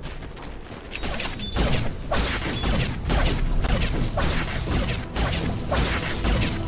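Fantasy battle sound effects clash and crackle rapidly.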